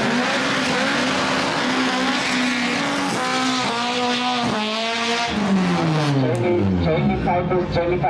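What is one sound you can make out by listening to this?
A racing car engine revs hard, then roars away down the track.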